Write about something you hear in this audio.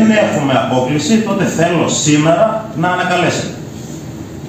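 A middle-aged man speaks calmly into a microphone in a room with a slight echo.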